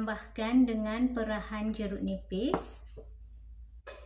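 A small bowl is set down on a table.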